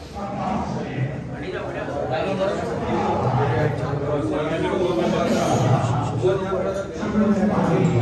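A middle-aged man calls out and directs nearby.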